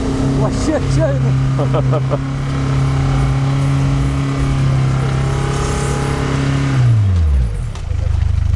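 A car engine roars at high revs, then winds down.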